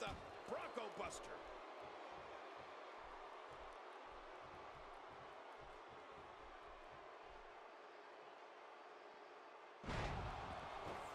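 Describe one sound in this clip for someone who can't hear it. A crowd cheers and murmurs throughout.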